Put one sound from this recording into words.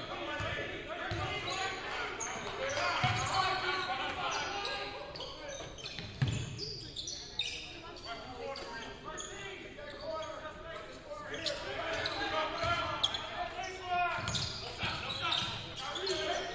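Young women call out to each other across a large echoing gym.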